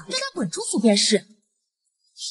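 A young woman speaks indignantly, close by.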